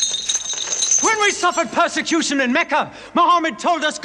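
A man speaks loudly and urgently nearby.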